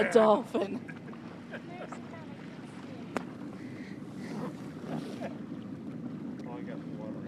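Water laps and splashes gently.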